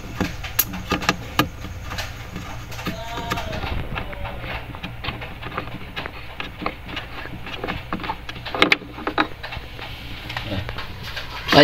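A light bulb clicks and scrapes as it is twisted in its metal socket.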